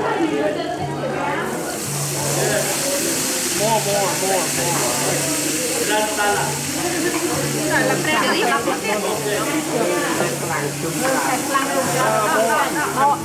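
Several people talk casually nearby.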